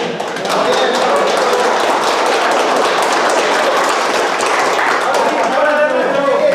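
A group of men clap their hands together.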